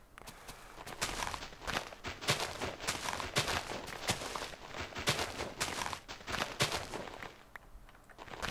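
Leaves rustle and swish as something pushes through dense foliage.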